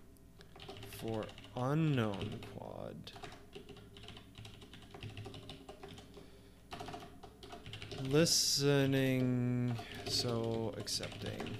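A man speaks with animation close to a microphone, drawing out some words.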